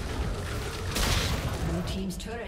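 A tower in a video game crumbles with a loud burst.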